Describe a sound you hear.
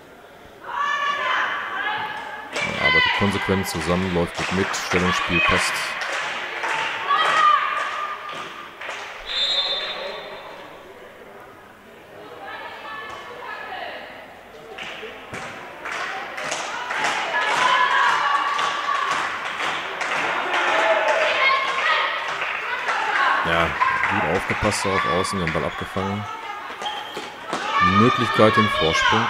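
A ball bounces and slaps against hands and the floor.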